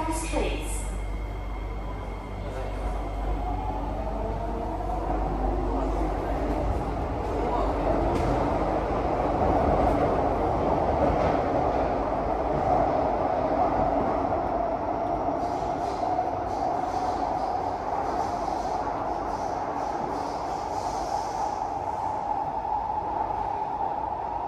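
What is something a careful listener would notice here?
A train rumbles and whines steadily along the track, heard from inside the carriage.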